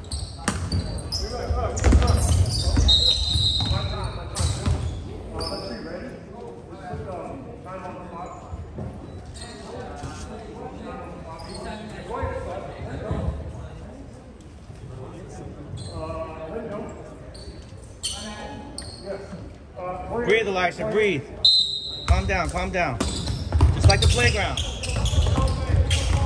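A basketball bounces on a hard court in a large echoing gym.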